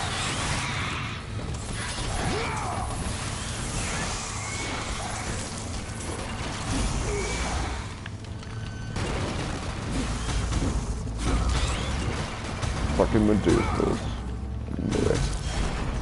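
Blades whoosh and clang as they strike enemies.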